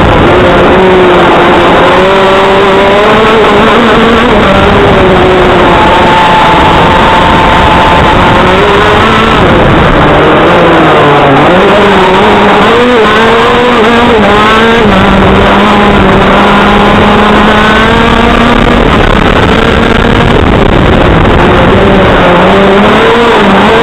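Wind rushes past hard and steadily.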